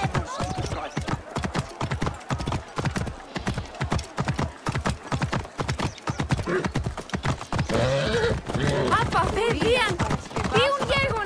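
Horse hooves clop steadily on stone paving.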